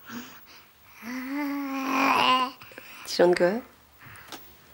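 A young girl laughs and squeals with delight close by.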